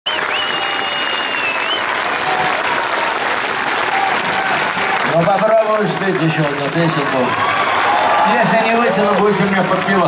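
A live rock band plays loudly through big loudspeakers.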